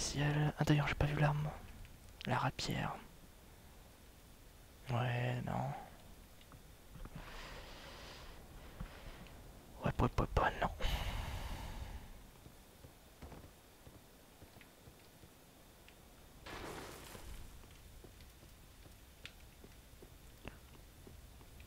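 Armoured footsteps clatter on stone and wood.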